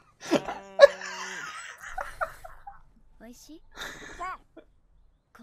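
A young man shouts excitedly and laughs close to a microphone.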